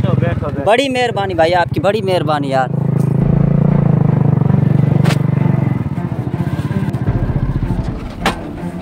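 A motorcycle engine putters steadily as it rides along.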